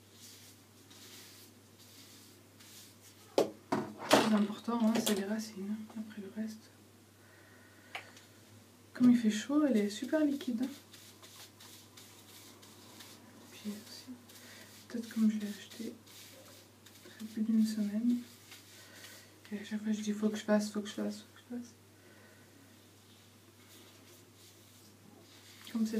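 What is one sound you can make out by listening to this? Gloved hands rustle through hair.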